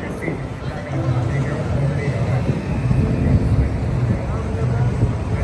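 Traffic rumbles along a busy street.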